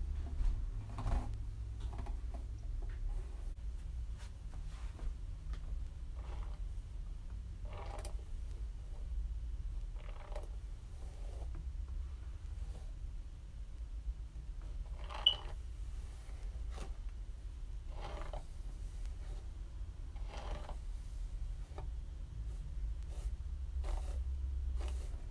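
A hairbrush swishes through long hair in slow, repeated strokes.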